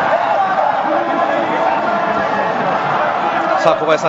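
Young men shout with joy close by.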